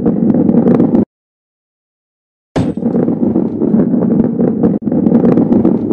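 A ball rolls and rumbles along a track.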